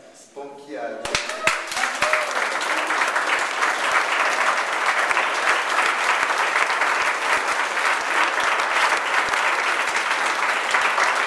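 A crowd applauds loudly in an echoing room.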